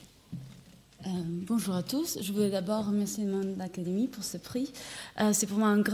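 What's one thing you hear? A young woman speaks calmly into a microphone in an echoing hall.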